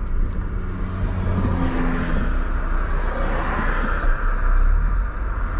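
Oncoming cars whoosh past.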